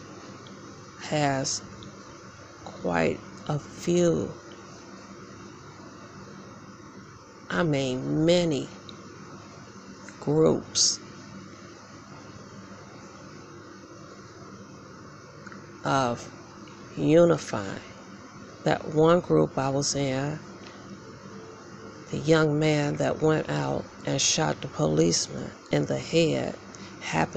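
A young woman speaks softly in bursts, close by.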